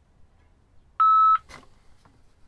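A handheld radio gives a short, loud electronic beep.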